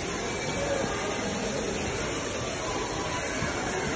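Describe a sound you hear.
Water trickles and splashes steadily nearby.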